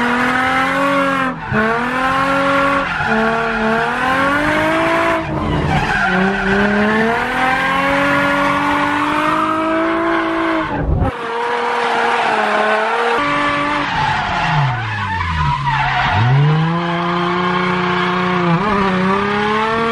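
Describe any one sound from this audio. A car engine roars and revs up and down loudly, heard from inside the car.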